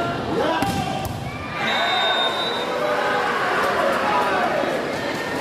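A large crowd cheers loudly in an echoing hall.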